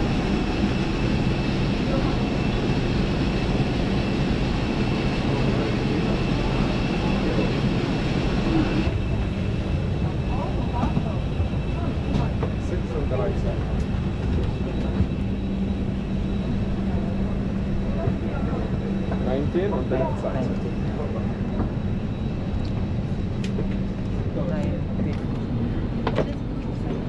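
A steady low hum of aircraft engines fills the cabin.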